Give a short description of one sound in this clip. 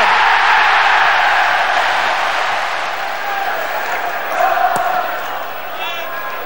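A large stadium crowd roars and cheers loudly, then slowly eases.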